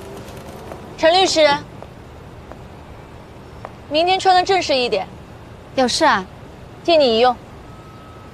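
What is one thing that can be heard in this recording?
A young woman speaks calmly and playfully from close by.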